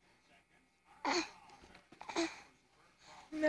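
A baby squeals and babbles up close.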